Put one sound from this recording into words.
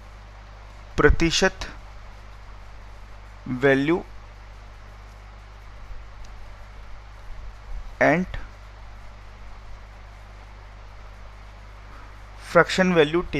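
A man speaks calmly into a headset microphone, in short bursts with pauses.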